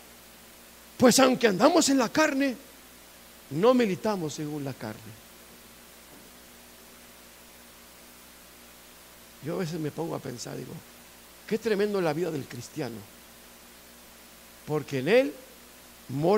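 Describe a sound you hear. A middle-aged man speaks calmly in bursts, with pauses, through a microphone.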